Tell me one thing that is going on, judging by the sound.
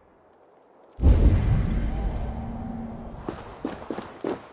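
Footsteps crunch through snow and leaves.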